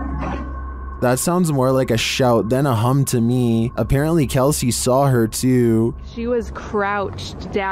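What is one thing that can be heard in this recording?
A young woman talks close by with animation.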